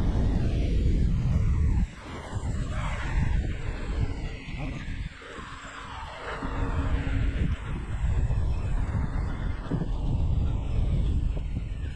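Wind buffets and roars against a microphone on a moving bicycle.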